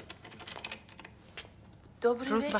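A door opens and clicks.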